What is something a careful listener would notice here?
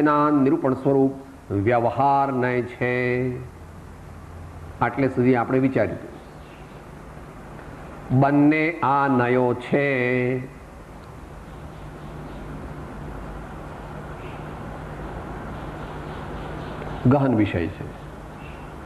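An elderly man speaks slowly and calmly, close by, in short phrases with pauses.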